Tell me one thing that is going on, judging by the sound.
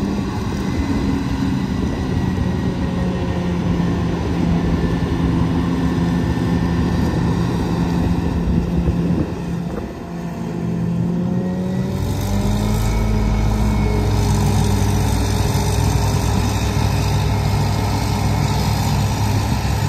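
A diesel truck engine rumbles close by, growing louder as it passes.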